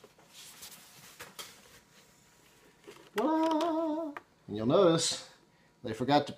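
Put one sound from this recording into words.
A keyboard's plastic case knocks and rattles in a man's hands.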